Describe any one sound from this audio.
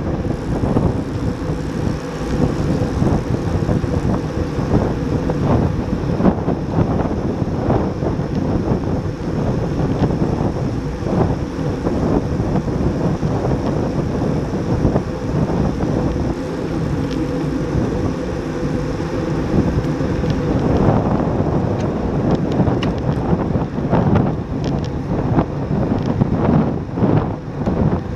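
Wind buffets loudly against a microphone.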